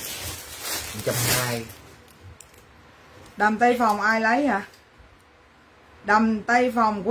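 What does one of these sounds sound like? A woman sings in short phrases close by.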